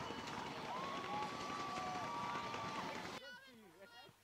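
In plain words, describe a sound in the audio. Young women cheer and shout loudly together outdoors.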